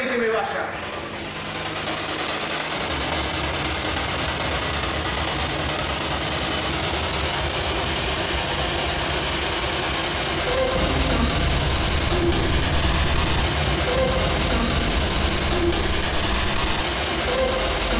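A handheld device hisses with steady static.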